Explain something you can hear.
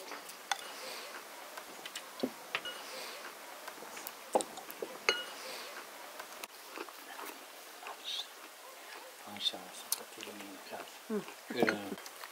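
Porcelain teacups clink on saucers.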